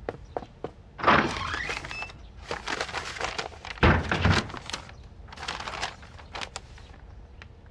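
Stiff paper crackles and rustles as a map is unrolled and handled.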